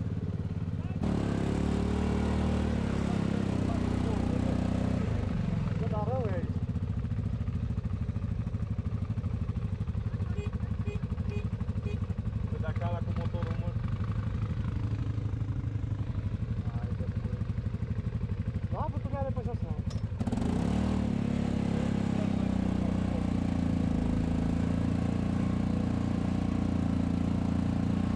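An off-road buggy engine rumbles steadily up close.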